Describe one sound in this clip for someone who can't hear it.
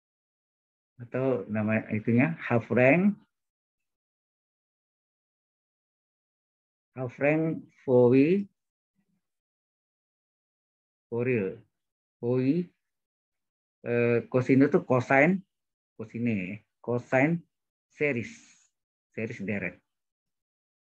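A man speaks calmly in short bursts over an online call.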